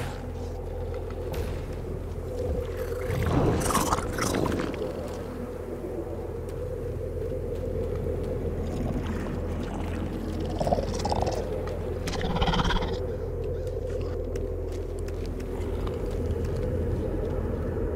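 Footsteps patter quickly over grass and leaves.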